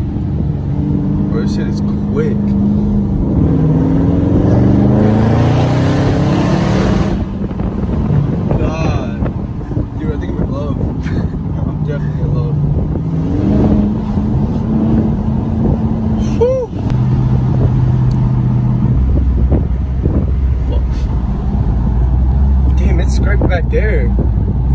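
A car engine rumbles loudly, revving up and shifting through gears.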